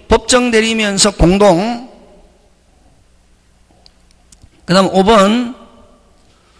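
A middle-aged man speaks calmly through a microphone in a reverberant room, in short bursts with pauses.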